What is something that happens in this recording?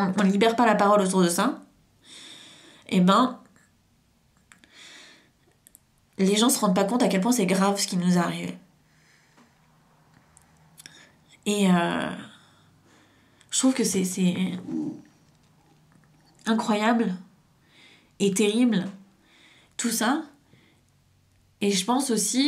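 A young woman talks close by in bursts, with pauses.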